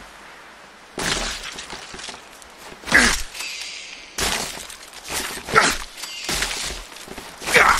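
Eggs burst open with a wet, crunching splatter.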